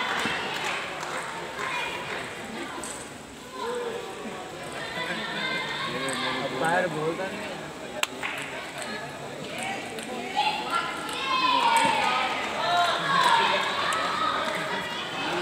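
A table tennis ball clicks against paddles and the table.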